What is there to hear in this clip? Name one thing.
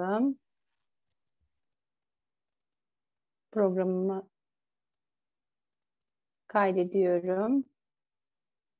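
A woman speaks through an online call in short phrases with pauses.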